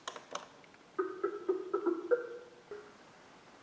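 A call tone rings from a computer.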